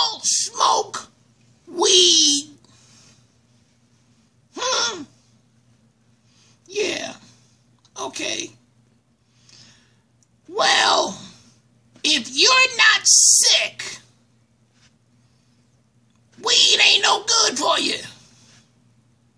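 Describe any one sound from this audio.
A man speaks in short, squeaky bursts in a comic puppet voice, close by.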